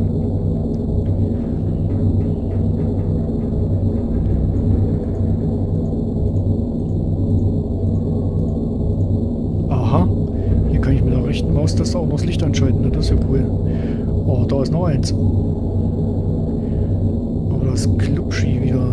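Deep water rumbles low and steadily.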